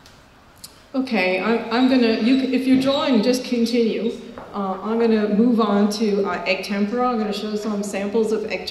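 A woman speaks steadily into a microphone, heard through a loudspeaker.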